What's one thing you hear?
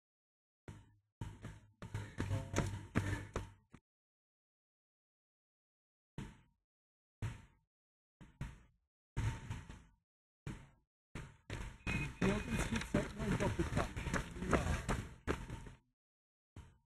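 Running footsteps slap on pavement close by.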